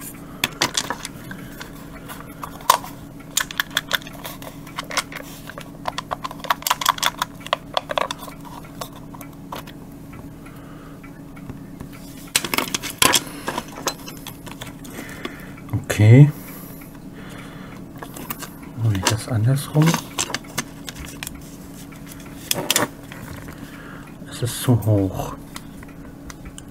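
Plastic parts click and rattle.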